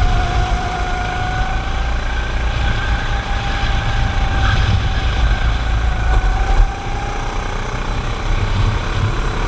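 A kart engine whines loudly up close, rising and falling in pitch.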